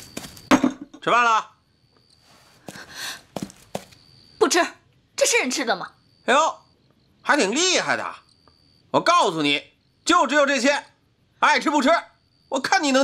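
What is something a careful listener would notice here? A young woman speaks in a sharp, scornful voice close by.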